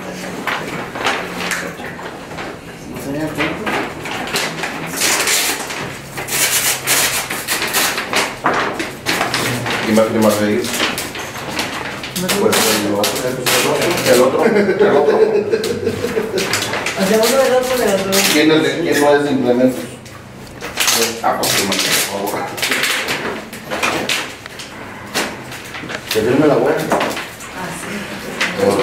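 Several men and women talk over one another nearby.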